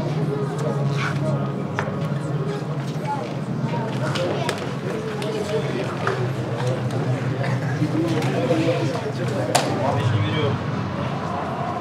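A crowd of men chat in a busy echoing corridor.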